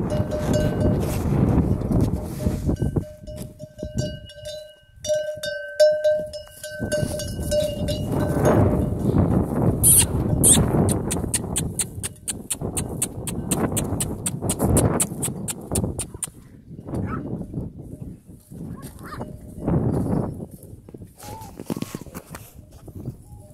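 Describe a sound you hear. Footsteps rustle through dry grass and brush.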